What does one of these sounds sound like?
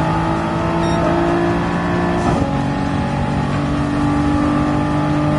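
A racing car engine drones at high revs.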